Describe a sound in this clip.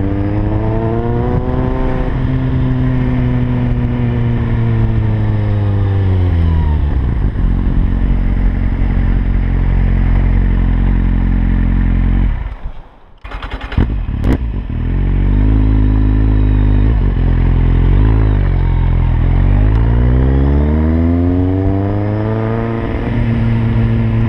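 A motorcycle engine drones close by, slowing and revving back up as it changes speed.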